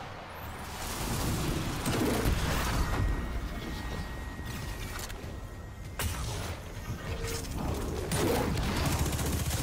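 Gunfire and energy blasts crackle in a fight.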